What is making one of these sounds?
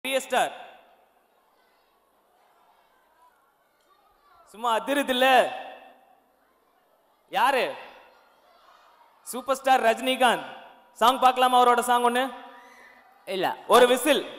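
A second young man sings along into a microphone.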